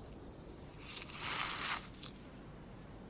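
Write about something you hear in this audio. Sand pours and rustles in a bowl.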